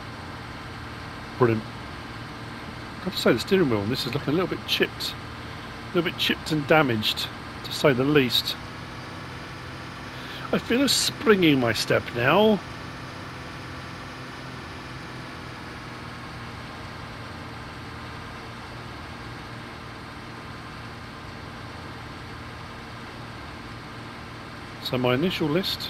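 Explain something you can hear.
A harvester engine hums steadily.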